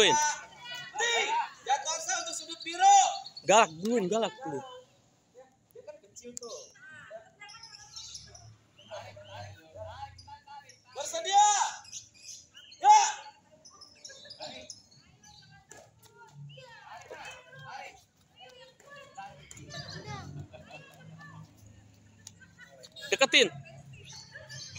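Children shout and call out nearby.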